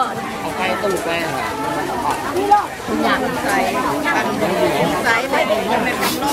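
A crowd of people chatters at an outdoor market.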